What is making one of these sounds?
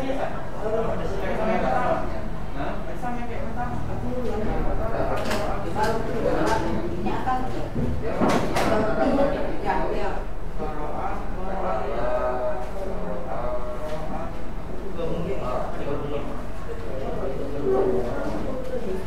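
Young men talk and chatter nearby in a room.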